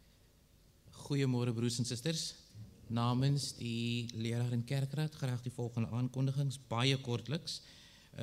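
A young man speaks steadily into a microphone.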